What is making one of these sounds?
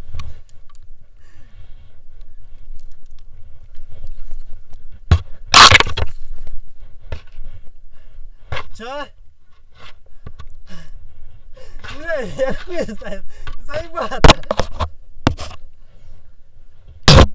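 Boots crunch through snow with each step.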